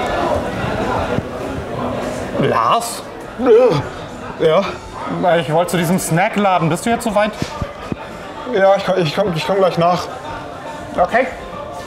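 Another young man speaks in reply, close by.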